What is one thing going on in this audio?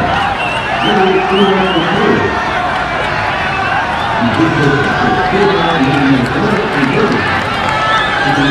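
Spectators chatter and shout outdoors around a football pitch.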